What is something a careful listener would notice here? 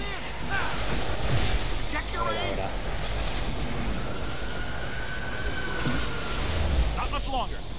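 Energy beams crackle and buzz loudly.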